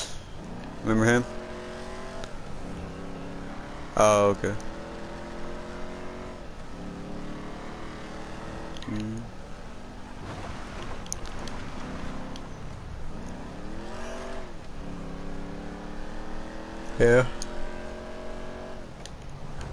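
A car engine revs and shifts gears as the car speeds along a road.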